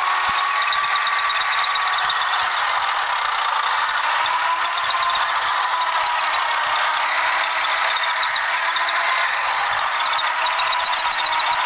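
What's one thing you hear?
An engine drones steadily up close.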